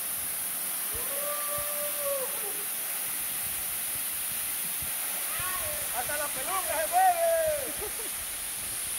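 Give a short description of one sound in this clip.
A young man shouts and whoops with excitement outdoors.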